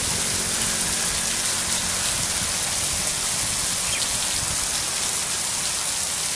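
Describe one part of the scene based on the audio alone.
Water patters and splashes onto wet animals and the ground.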